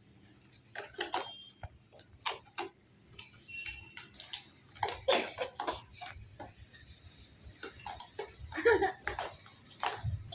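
Cardboard and plastic packaging rustle and tap as a box is handled.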